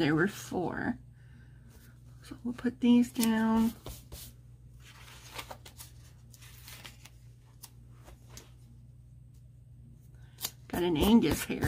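Paper rustles softly as stickers are peeled and pressed onto a page.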